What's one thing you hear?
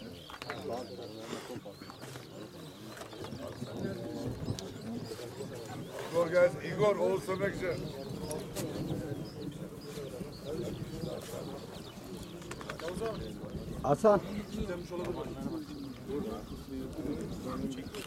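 Several men talk at once outdoors, some distance away.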